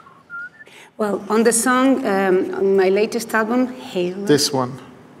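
A woman sings with a trembling voice through loudspeakers.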